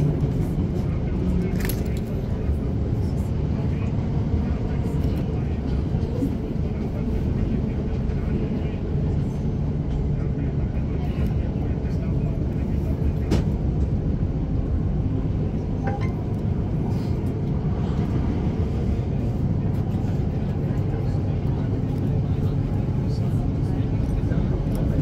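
Train wheels click and clack over rail joints.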